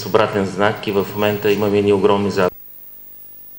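A middle-aged man speaks formally into a microphone.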